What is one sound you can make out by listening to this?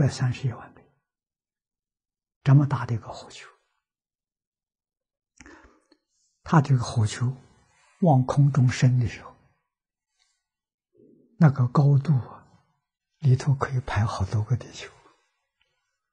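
An elderly man speaks calmly and warmly into a close microphone, in short phrases with pauses.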